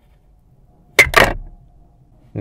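A plastic holder clacks loudly against a car dashboard.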